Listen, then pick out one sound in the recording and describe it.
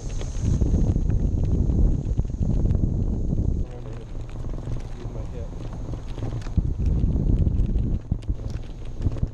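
Wind rushes and buffets loudly against the microphone, in gusts.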